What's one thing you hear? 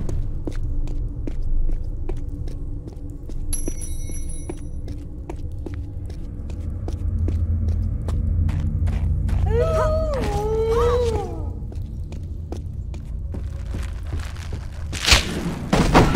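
Quick footsteps patter on stone in an echoing cave.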